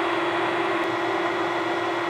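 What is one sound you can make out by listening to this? A drill bit grinds into metal.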